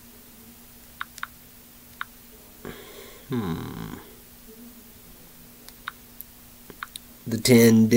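Small clicks and taps sound close by.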